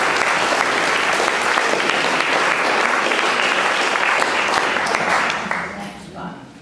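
Applause rings out and then stops.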